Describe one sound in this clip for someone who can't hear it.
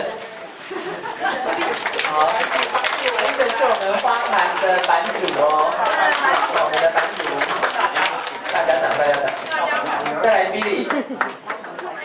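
A group of people clap their hands in rhythm.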